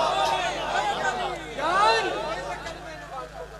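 Men in a crowd shout and cheer.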